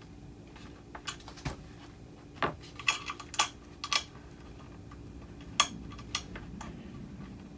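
Metal parts click and rattle.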